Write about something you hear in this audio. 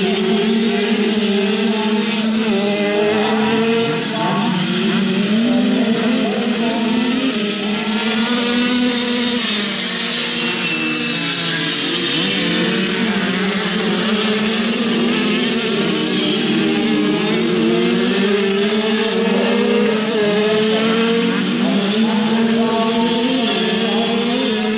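Motorcycle engines drone and rev nearby outdoors.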